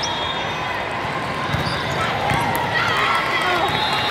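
A volleyball is hit with a sharp slap.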